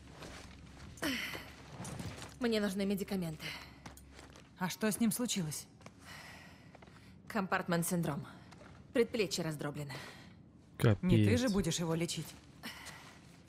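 A second young woman answers in a low, strained voice.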